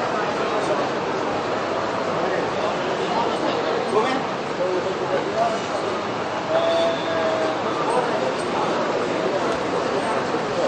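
A crowd of people chatters and murmurs nearby.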